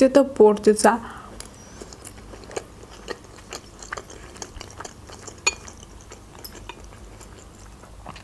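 A young woman chews food with soft, wet mouth sounds.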